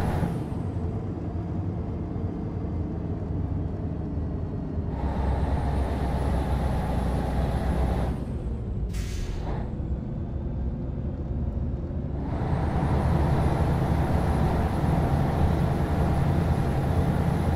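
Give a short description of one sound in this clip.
A heavy truck engine rumbles steadily while driving.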